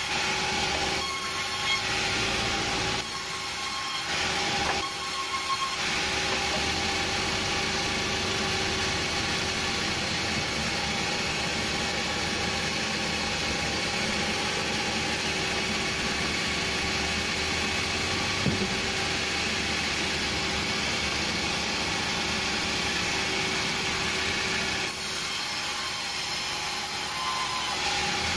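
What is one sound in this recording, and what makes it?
A band saw runs with a steady whine.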